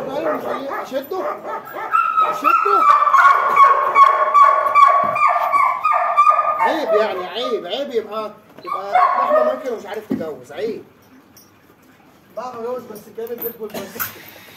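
A dog whines and yelps loudly.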